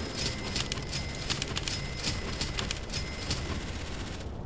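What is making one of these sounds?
Soft game menu clicks tick in quick succession.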